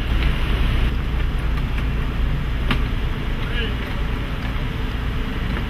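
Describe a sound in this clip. Road cases on casters rumble over pavement.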